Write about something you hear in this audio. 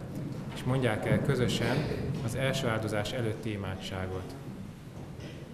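Many hands clap in an echoing hall.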